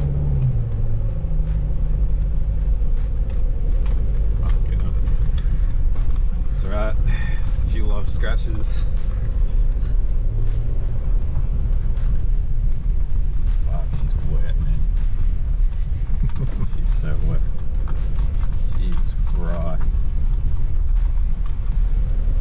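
A vehicle's body rattles and knocks over a bumpy dirt track.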